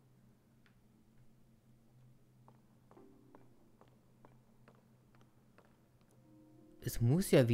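Footsteps patter softly on stone.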